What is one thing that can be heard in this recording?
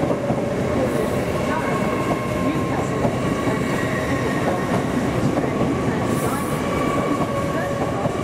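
Train wheels squeal faintly on the rails.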